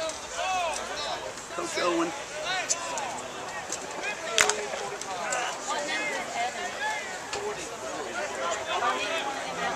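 Young men on a sideline talk and shout outdoors.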